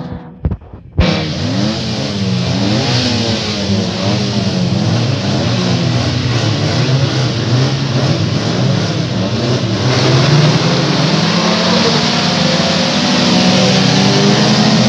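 Car engines roar and rev hard close by.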